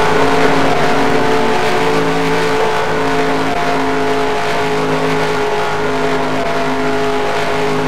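A stock car engine roars at full throttle.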